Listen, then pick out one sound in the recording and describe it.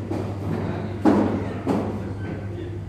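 Billiard balls clack together sharply.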